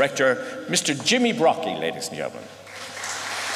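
A choir sings a final held chord in a large hall.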